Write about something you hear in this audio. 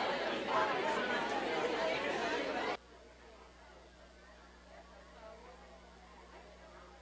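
A crowd of men and women chat and murmur in a large echoing hall.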